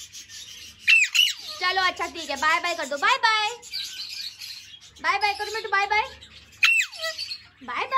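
A parrot lets out sharp high screeches.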